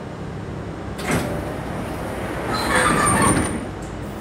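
Subway train doors slide shut with a thud.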